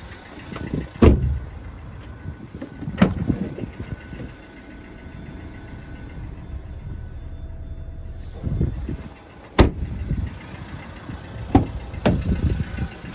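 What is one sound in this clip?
Car doors and a boot lid clunk sharply as they open and shut.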